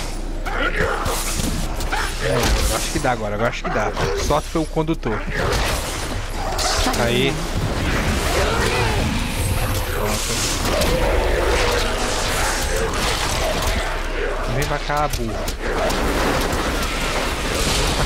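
Spells crackle and explode in quick bursts of battle.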